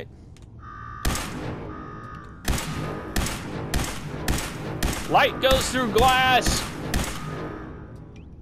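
Rapid gunshots fire in a burst and echo.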